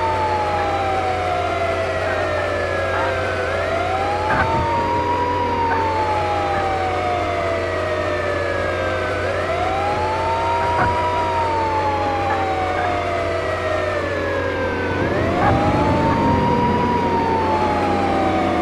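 A siren wails, rising and falling slowly over and over.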